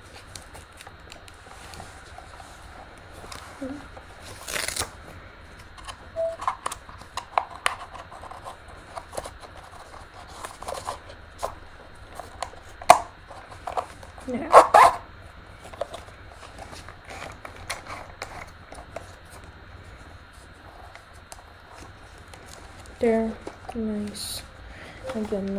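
Plastic parts click and knock as a headset is handled up close.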